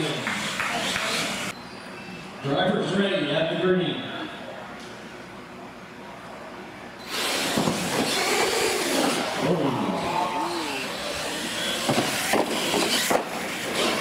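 A small electric motor whines as a toy truck races and jumps.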